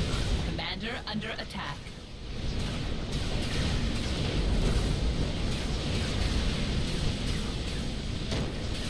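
Distant explosions and gunfire rumble steadily in a battle.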